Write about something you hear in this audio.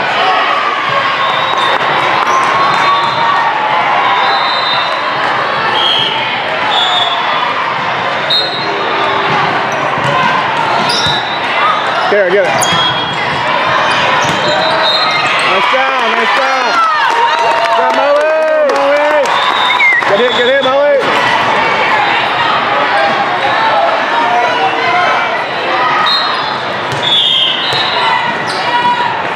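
A crowd of spectators cheers and chatters in a large echoing hall.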